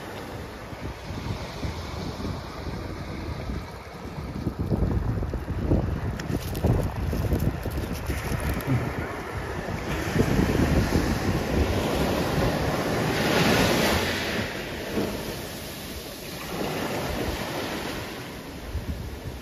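Small waves wash onto a pebble beach.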